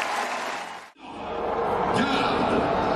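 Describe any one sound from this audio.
A large crowd murmurs in an open arena.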